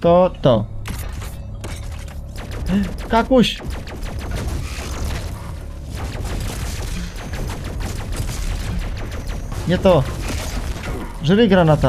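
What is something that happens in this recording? Gunshots blast rapidly.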